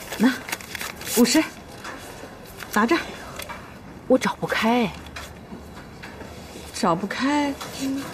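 A young woman speaks calmly and closely.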